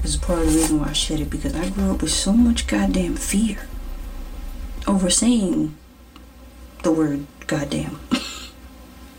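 A woman talks casually and close to the microphone.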